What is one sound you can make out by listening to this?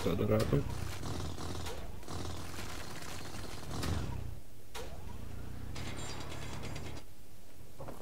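A power drill whirs and grinds against ice.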